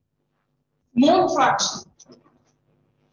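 A man speaks briefly with animation through a clip-on microphone.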